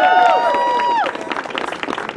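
A brass band holds a loud final chord that cuts off.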